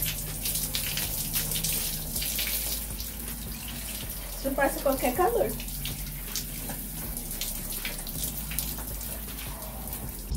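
Water pours steadily from a pipe and splashes onto the ground.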